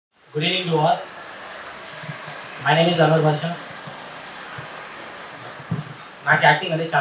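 A young man speaks in short phrases into a microphone, heard through a loudspeaker outdoors.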